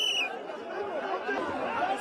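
A woman cries out in distress close by.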